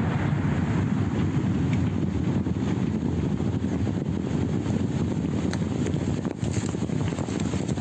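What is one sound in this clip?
A deep rumble from a nearby blast rolls across open ground.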